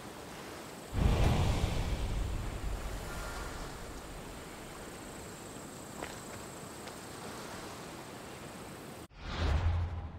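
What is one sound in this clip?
Waves wash softly against rocks, with a light breeze outdoors.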